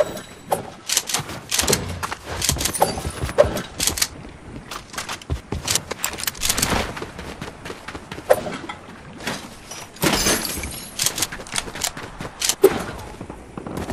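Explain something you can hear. Quick footsteps patter on stone and wood.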